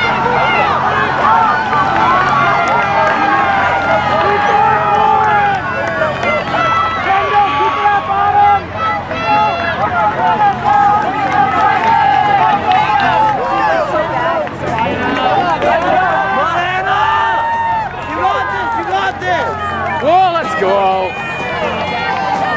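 A crowd of spectators cheers and shouts loudly nearby.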